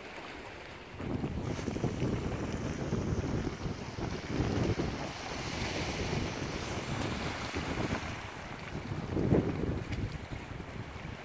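Wind blows in gusts across the microphone outdoors.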